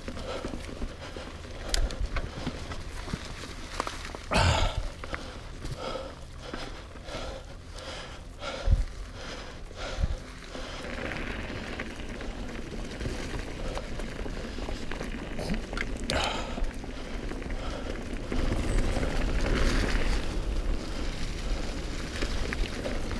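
Bicycle tyres crunch and rustle over dry fallen leaves.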